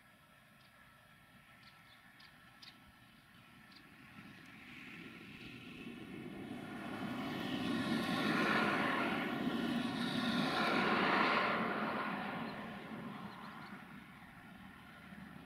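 An electric train rumbles along the tracks, growing louder as it nears and then fading away.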